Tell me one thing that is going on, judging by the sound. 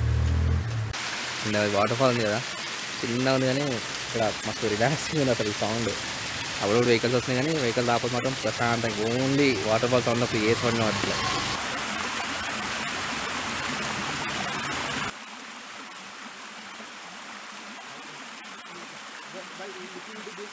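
A small waterfall splashes and trickles steadily.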